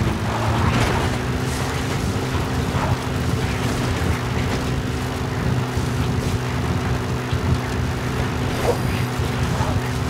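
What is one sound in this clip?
Tyres crunch over rough dirt.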